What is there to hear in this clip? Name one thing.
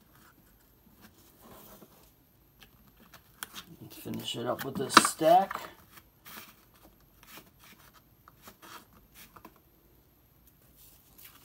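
Trading cards rustle and click as a hand flips through them.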